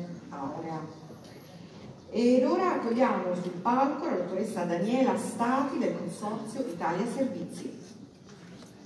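A woman speaks through a microphone, calmly and expressively, in a large echoing hall.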